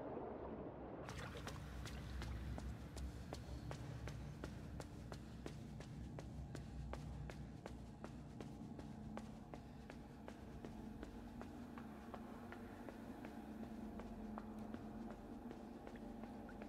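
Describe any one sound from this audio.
Small footsteps patter steadily on a hard floor.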